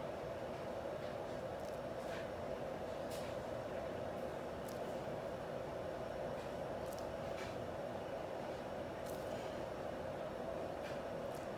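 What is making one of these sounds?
A plastic piping bag crinkles softly as it is squeezed.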